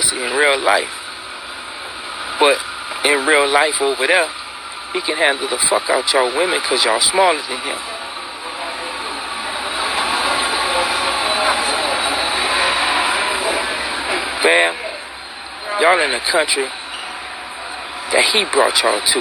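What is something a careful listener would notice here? A man talks close to a phone microphone, in short bursts with pauses.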